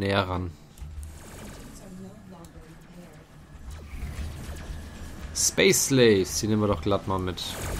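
Laser cannons fire in short zapping bursts.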